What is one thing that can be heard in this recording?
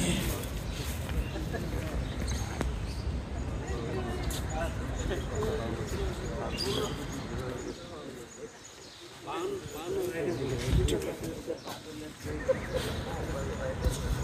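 Footsteps shuffle on stone paving outdoors.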